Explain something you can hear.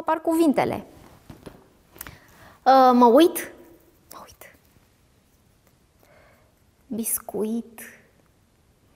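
A young woman speaks expressively into a nearby microphone, with long pauses.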